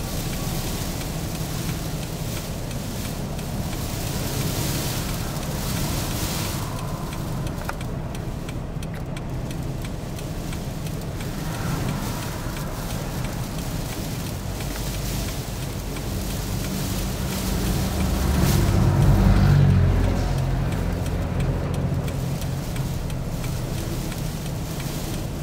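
Strong wind roars outside.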